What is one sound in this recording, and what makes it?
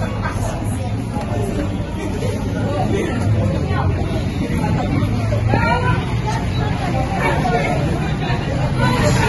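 A group of children chatter and call out nearby.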